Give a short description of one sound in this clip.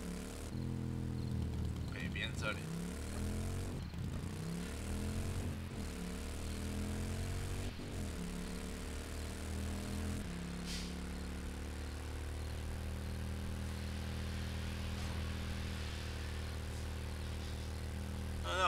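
A motorcycle engine hums steadily and revs up and down.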